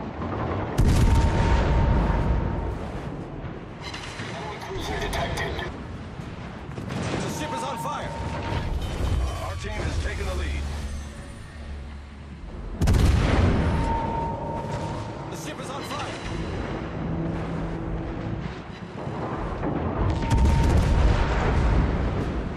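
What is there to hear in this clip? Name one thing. Heavy naval guns fire in loud booming salvos.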